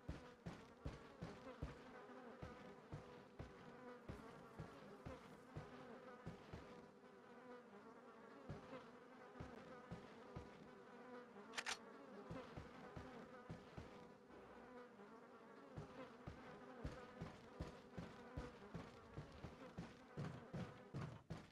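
Footsteps thud on wooden floorboards at a walking pace.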